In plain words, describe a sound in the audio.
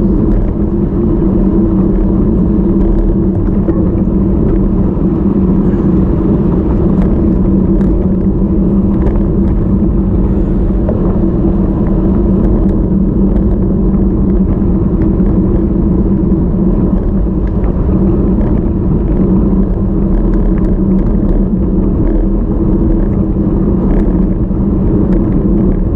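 Wind buffets loudly outdoors throughout.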